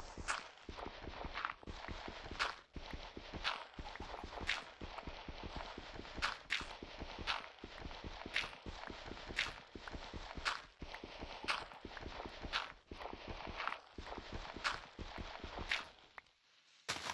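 Rapid tapping of a pick chipping at stone.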